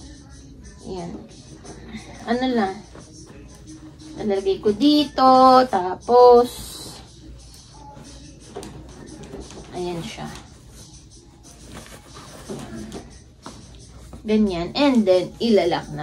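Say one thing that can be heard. Clothes and bags rustle as they are handled.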